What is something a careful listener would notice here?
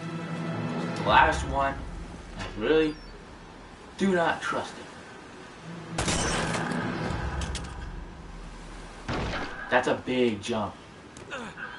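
A man talks into a microphone with animation.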